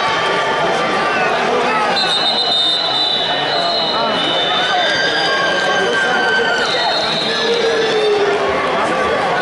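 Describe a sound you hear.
A large crowd murmurs and calls out in an echoing hall.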